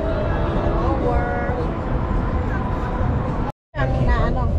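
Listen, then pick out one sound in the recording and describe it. A woman speaks casually close by.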